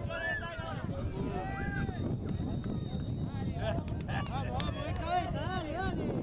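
A crowd of spectators shouts and cheers close by outdoors.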